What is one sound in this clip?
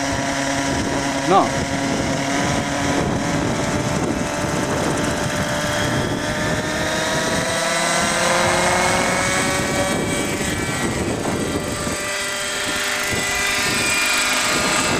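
A model helicopter's engine whines loudly, rising in pitch as it spools up.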